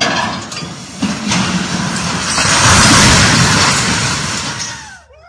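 A tall steel crane topples and crashes heavily to the ground with a loud metallic roar.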